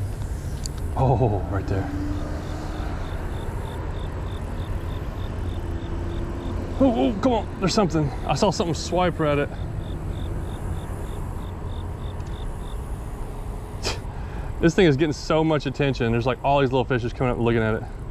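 A man speaks casually, close to the microphone.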